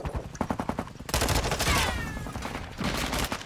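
A rifle fires a burst of rapid shots close by.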